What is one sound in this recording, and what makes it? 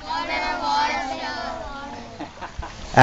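Children talk softly in the background.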